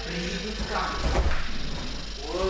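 A body thuds heavily onto a padded mat.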